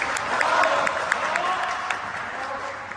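Shoes tap on a wooden floor in a large echoing hall.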